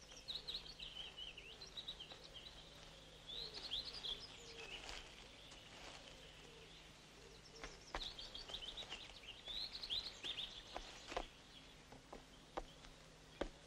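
Footsteps crunch over stones and dry leaves.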